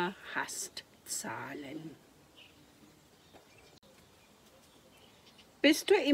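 An elderly woman reads aloud calmly, close by.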